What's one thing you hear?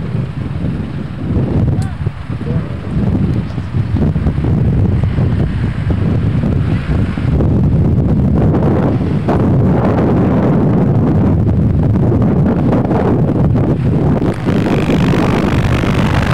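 A train rumbles steadily past close by.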